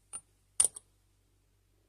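A plastic bottle cap clicks as it is twisted open.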